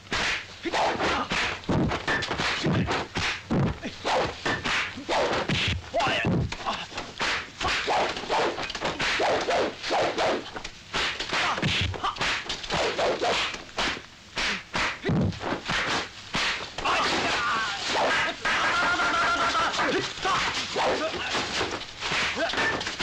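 Fists and a wooden staff strike in quick, sharp blows.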